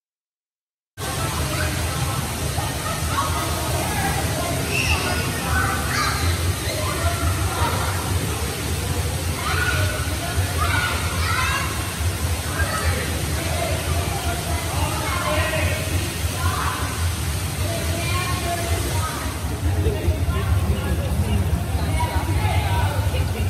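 Children shout and chatter, echoing in a large hall.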